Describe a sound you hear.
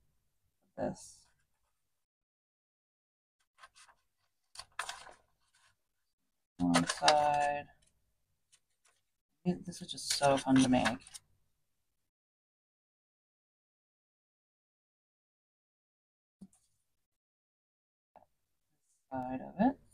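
Scissors snip through paper and card.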